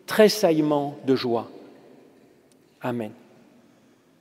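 A man speaks slowly and solemnly through a microphone in a large echoing hall.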